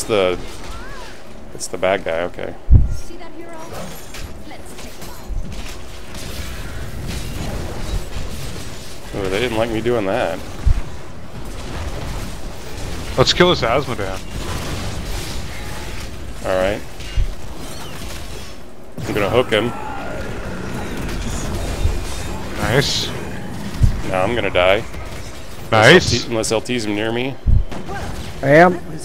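A battle game's combat effects crash, thud and zap.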